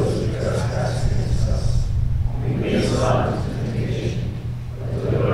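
An older man reads aloud calmly through a microphone in an echoing room.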